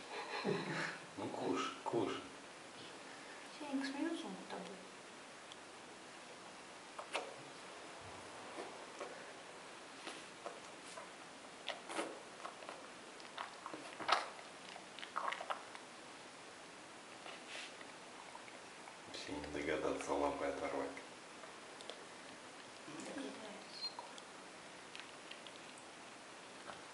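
A bear cub chews and gnaws noisily close by.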